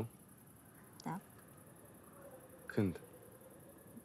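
A man speaks quietly in short phrases, close by.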